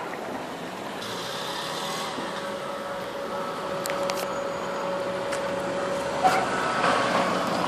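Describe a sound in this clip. A car engine hums steadily nearby.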